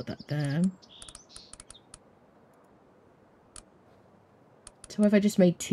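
Short interface clicks sound several times.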